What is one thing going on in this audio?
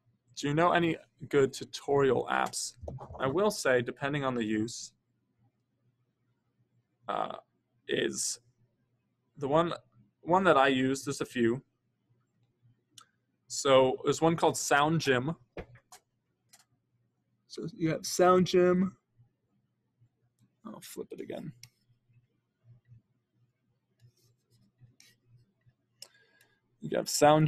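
A young man talks calmly and close to a microphone, with pauses.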